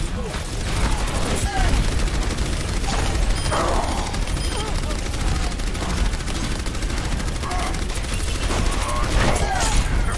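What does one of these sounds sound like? Game explosions boom loudly.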